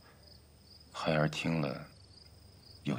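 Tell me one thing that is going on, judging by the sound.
A middle-aged man speaks quietly and hesitantly, close by.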